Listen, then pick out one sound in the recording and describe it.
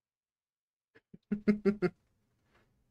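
A man chuckles briefly close by.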